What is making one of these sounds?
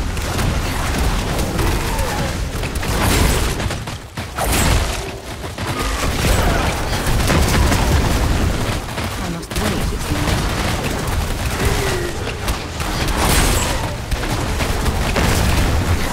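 Blades slash and strike monsters with heavy impacts.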